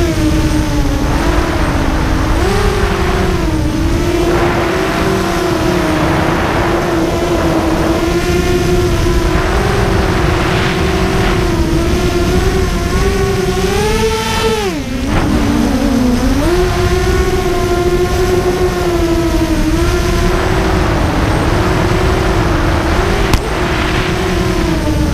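A small drone's motors whine loudly and close, rising and falling in pitch as it speeds up and slows down.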